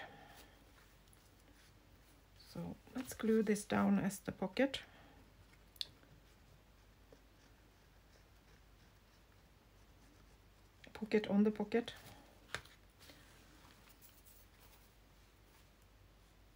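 Paper and cloth rustle softly as they are handled.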